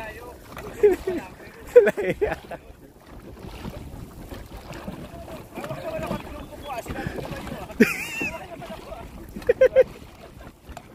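Men on a dragon boat call out outdoors.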